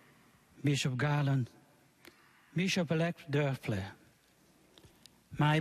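A man chants slowly into a microphone in a large echoing hall.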